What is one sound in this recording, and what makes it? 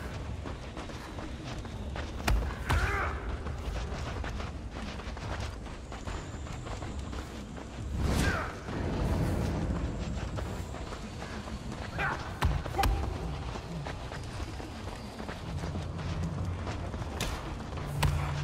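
Bare feet shuffle on a sandy floor.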